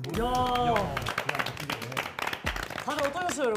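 Young men clap their hands.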